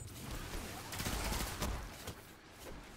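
Rapid gunfire rattles and bursts.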